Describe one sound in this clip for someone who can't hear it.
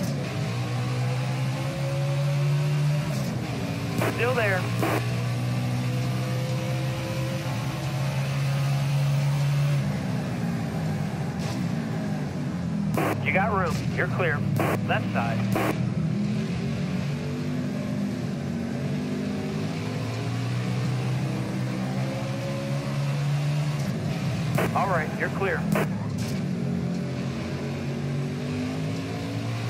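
A race car engine roars steadily, rising and dropping in pitch as it shifts gears.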